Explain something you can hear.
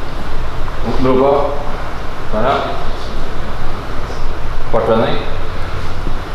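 A young woman speaks in short phrases nearby.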